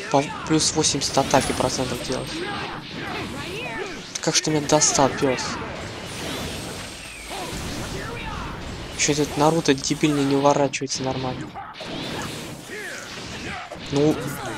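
Punches and blasts of energy strike with sharp thuds and whooshes.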